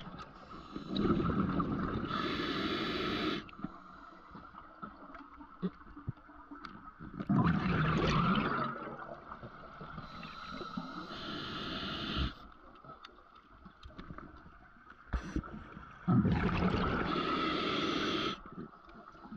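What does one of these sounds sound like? Bubbles gurgle and rush from a diver's breathing gear underwater, in loud bursts.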